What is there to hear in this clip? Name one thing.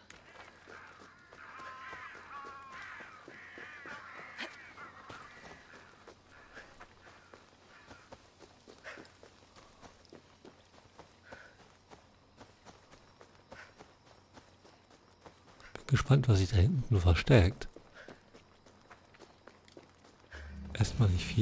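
Footsteps rustle through dry grass and over rocky ground.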